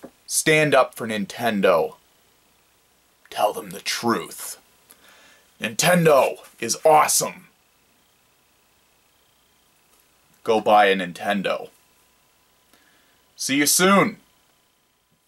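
A young man talks close to a microphone, with animation and in short bursts.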